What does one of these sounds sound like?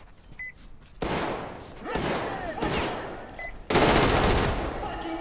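A rifle fires loud bursts of shots.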